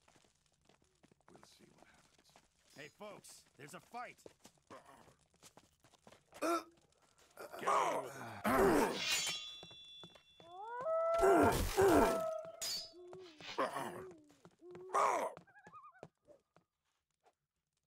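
Footsteps tread on stone and wooden boards.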